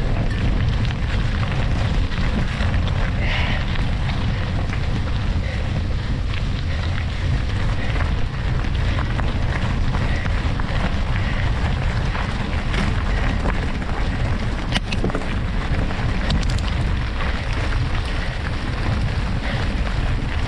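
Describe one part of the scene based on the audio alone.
Bicycle tyres crunch and rumble over loose gravel.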